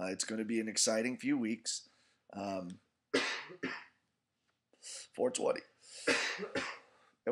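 A man speaks close to the microphone in a deep voice, in short expressive bursts with pauses.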